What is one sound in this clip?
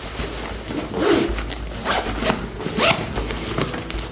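A bag's fabric rustles as it is handled.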